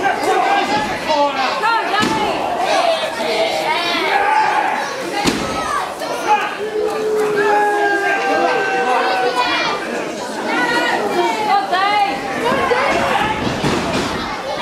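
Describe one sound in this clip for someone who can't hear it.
A seated crowd of spectators shouts and cheers.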